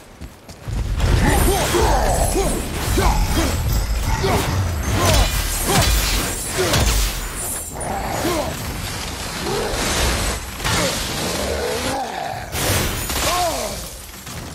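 Heavy blows and metal clangs ring out in a fight.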